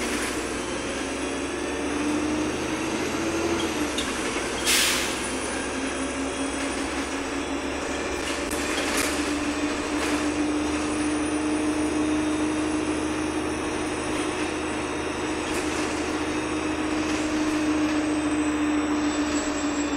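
The inside of a bus rattles and creaks over the road.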